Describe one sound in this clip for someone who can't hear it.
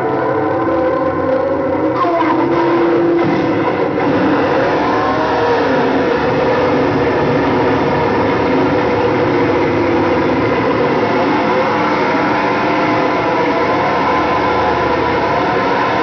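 A large crowd chatters and shouts loudly in an echoing hall.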